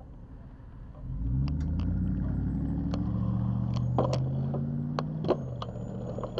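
A car engine revs up, rising in pitch as the car pulls away.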